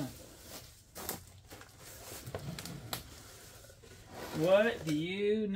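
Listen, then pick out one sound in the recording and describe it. A cardboard box rustles and scrapes.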